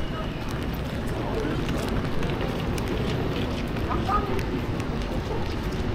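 Car tyres hiss on a wet road.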